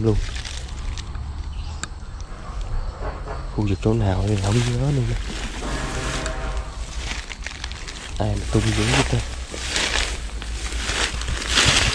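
Footsteps swish through long grass.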